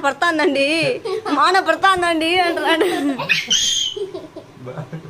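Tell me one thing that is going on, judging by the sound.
A man laughs heartily up close.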